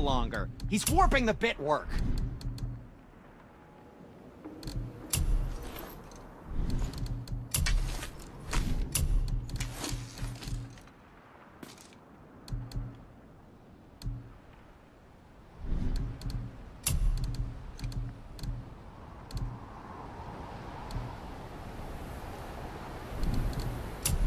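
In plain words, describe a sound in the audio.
Soft game menu clicks tick as options change.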